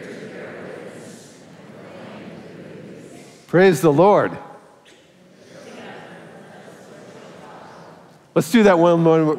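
A congregation speaks together in unison.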